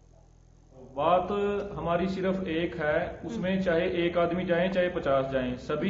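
A man talks steadily over a phone line.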